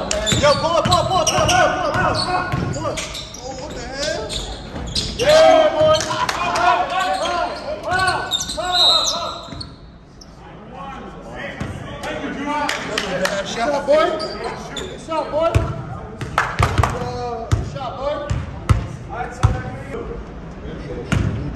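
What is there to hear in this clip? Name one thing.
Sneakers squeak sharply on a hard floor, echoing in a large hall.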